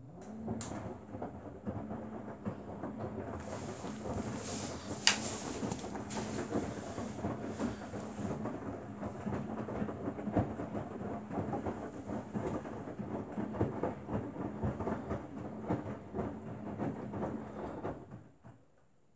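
Wet laundry tumbles and sloshes in a washing machine drum.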